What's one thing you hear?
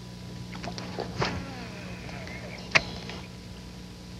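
A fishing reel clicks as a line is cast and reeled in.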